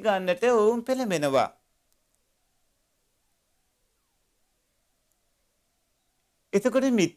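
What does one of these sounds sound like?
A man speaks calmly into a close microphone, pausing in silence between phrases.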